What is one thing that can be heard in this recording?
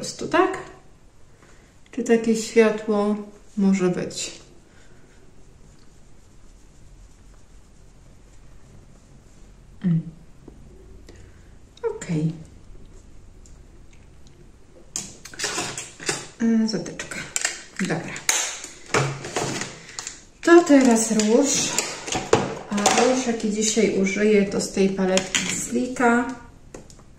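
A middle-aged woman talks calmly and close by, with pauses.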